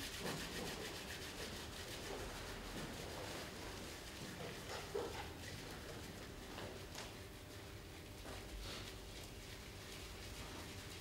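A man rubs his palms together with a soft swishing sound.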